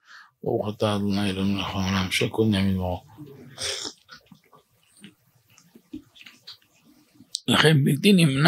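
A middle-aged man speaks in a slow, chanting voice into a nearby microphone.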